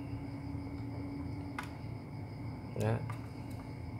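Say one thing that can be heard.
A plastic drone arm clicks softly as a hand folds it.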